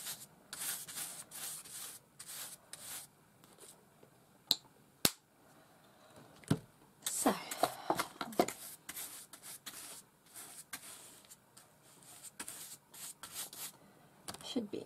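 A stiff paintbrush scrubs and swishes across paper.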